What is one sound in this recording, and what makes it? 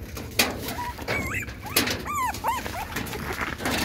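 Puppies whimper and squeal with high, wavering cries.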